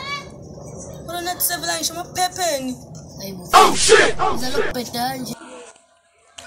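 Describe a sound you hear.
A boy reads aloud with animation, close by.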